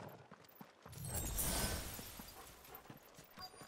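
A magic burst flares with a loud whoosh.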